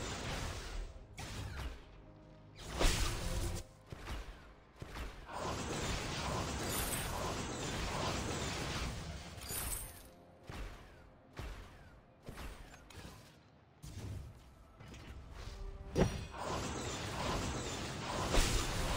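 Game attack hits thud and zap repeatedly.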